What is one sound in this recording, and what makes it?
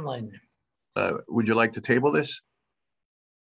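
An older man speaks with feeling over an online call.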